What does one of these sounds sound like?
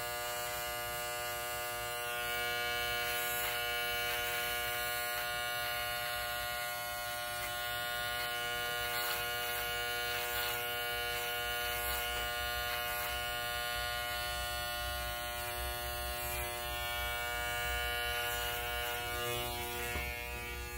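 Electric hair clippers buzz steadily close by.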